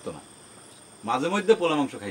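A man speaks with emotion nearby.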